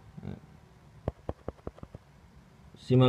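A small metal fishing reel clicks as it is handled.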